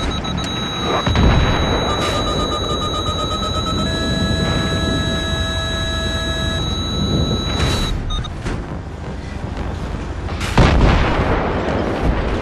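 Shells explode with loud bangs.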